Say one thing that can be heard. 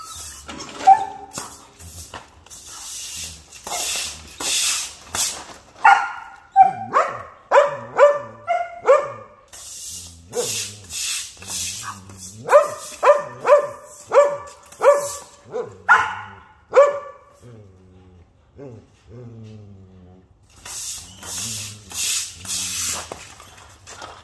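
A broom scrapes and swishes across the floor.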